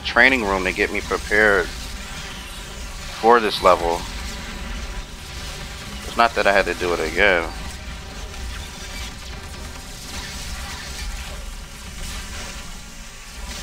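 Energy blasts crackle and boom in a fight.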